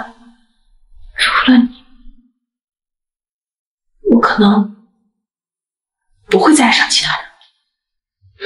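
A young woman speaks quietly and with emotion, close by.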